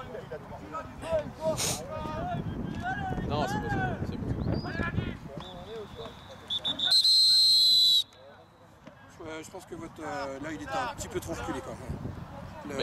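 Players shout across an open field.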